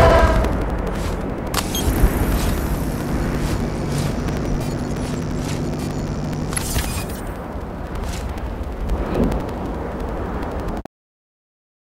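Game music plays loudly and steadily.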